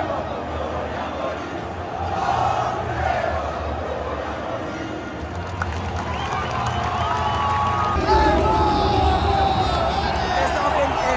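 A large stadium crowd cheers and sings loudly.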